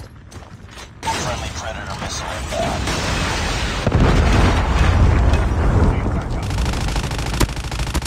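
Heavy explosions rumble.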